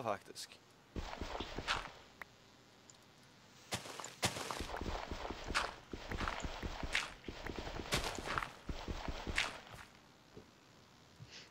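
Stone crunches as blocks are dug out, again and again.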